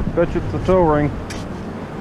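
A shovel digs into wet sand.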